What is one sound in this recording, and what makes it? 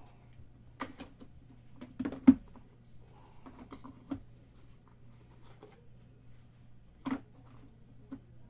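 Cards and packs click and rustle as hands handle them.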